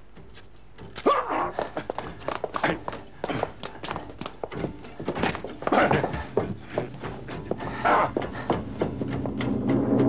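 Bodies scuffle and thump in a violent struggle.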